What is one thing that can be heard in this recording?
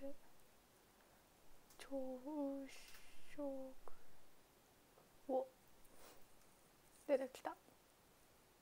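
A young woman speaks softly and close to a microphone, in short phrases.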